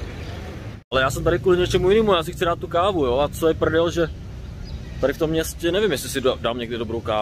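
A young man talks with animation, close to the microphone.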